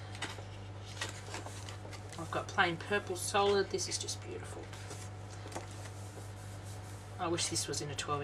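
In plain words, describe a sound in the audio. Sheets of paper slide and rustle as they are laid down and swapped.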